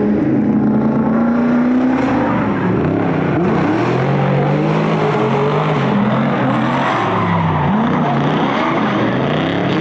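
Car engines rev hard, rising and falling in pitch.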